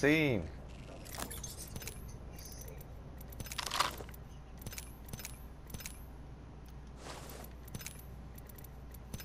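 Short clicks and clatters sound as items are picked up one after another.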